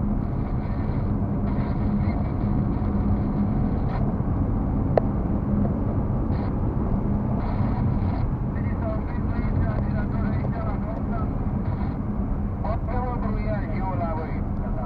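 A car engine hums steadily with road noise as it drives along a highway.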